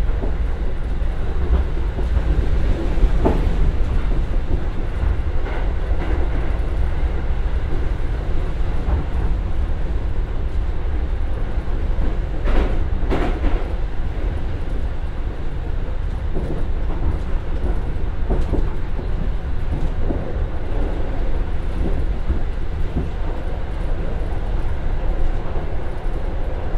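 A diesel train engine rumbles steadily from close by.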